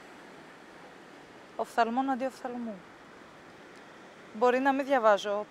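Waves wash gently against rocks.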